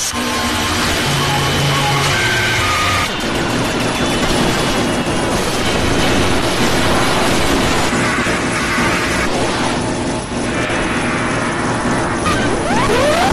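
A jet airliner roars overhead.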